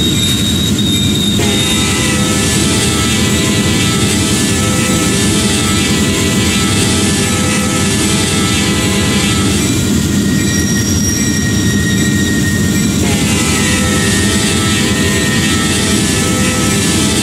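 A diesel locomotive engine rumbles steadily close by.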